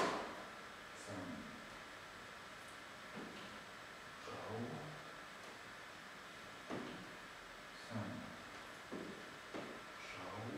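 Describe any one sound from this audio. Feet thump and shuffle on a wooden floor.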